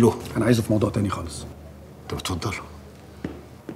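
A younger man answers calmly, close by.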